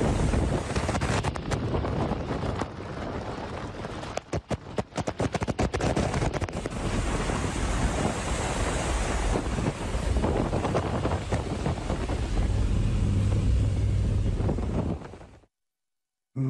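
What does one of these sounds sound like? Wind and engine noise roar loudly.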